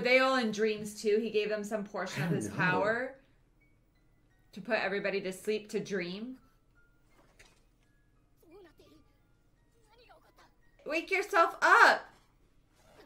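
A young woman talks and exclaims in surprise.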